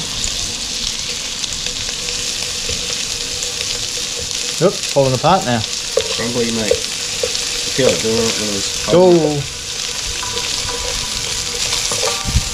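Food sizzles and crackles in hot oil in a frying pan.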